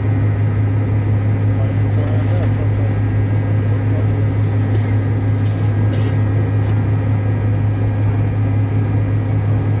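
A jet engine drones steadily with a low hum inside the cabin.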